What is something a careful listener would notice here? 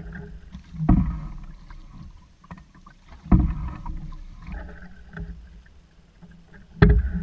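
Wind rumbles across the water outdoors.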